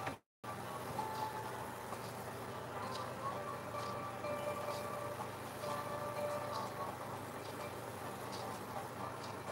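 A brush dabs softly against a canvas.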